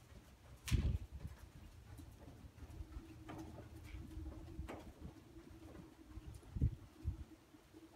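A horse's hooves thud softly on sand as it canters.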